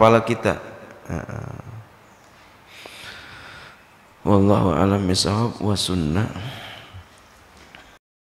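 A man speaks expressively into a microphone, heard up close.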